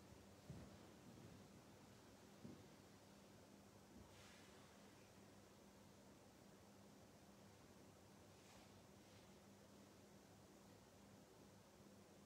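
Small objects knock softly against a table.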